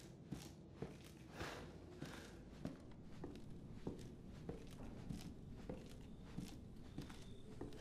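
Footsteps thud slowly down creaking wooden stairs.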